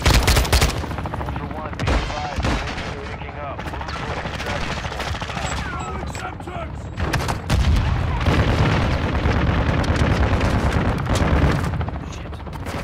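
A helicopter's rotor thumps and roars overhead.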